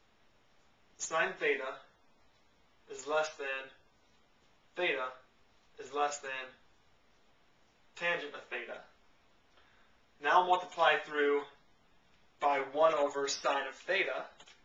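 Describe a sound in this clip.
A young man speaks calmly and clearly, close by, in short phrases.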